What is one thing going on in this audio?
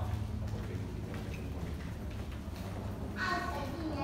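Footsteps tap on a hard floor in a large echoing hall.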